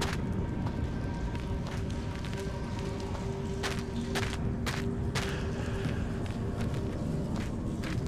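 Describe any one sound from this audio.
A fire crackles and roars close by.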